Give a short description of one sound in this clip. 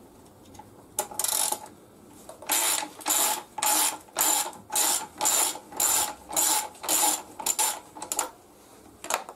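A ratchet wrench clicks rapidly as it turns a nut.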